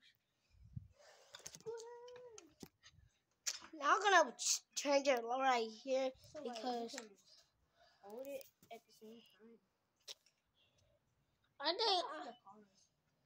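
A boy talks animatedly, close to a phone microphone.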